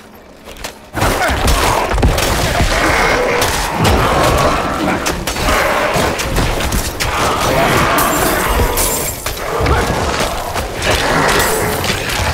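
Game combat effects crash and clash with heavy impacts.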